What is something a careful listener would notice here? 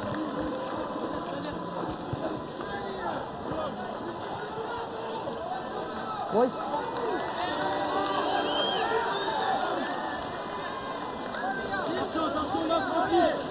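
Young men shout to each other on a sports field.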